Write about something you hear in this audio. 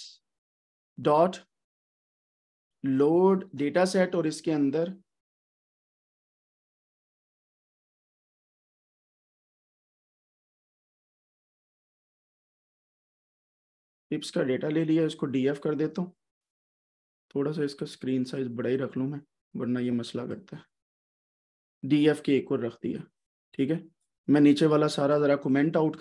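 A man speaks calmly into a close microphone, pausing now and then.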